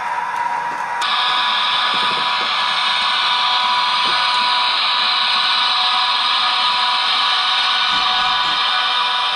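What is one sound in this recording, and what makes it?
A model train motor whirs as the train rolls along the track.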